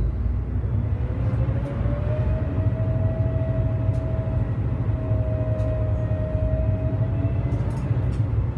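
A bus motor whines, rising and then holding steady.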